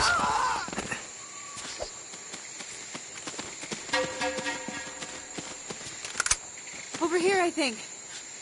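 Footsteps crunch through leaves and grass.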